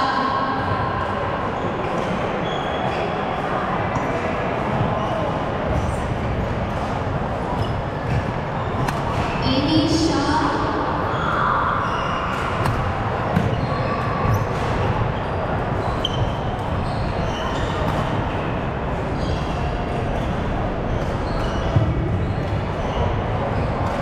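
A crowd of onlookers chatters in a large echoing hall.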